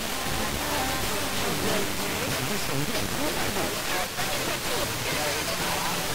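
Radio static hisses loudly from a receiver tuned to a weak station.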